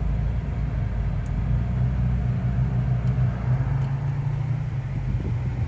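A vehicle engine hums low and steady from inside a car.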